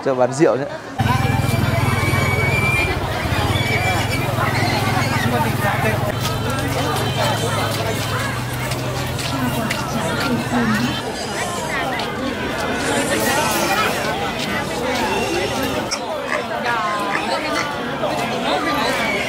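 A crowd of people chatters busily outdoors.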